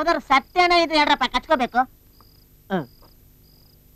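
A man speaks loudly with animation nearby.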